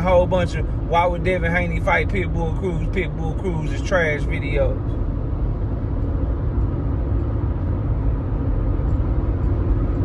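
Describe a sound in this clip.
A car's engine and road noise rumble low and steady.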